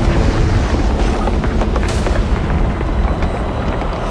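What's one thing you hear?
Stone cracks and crumbles.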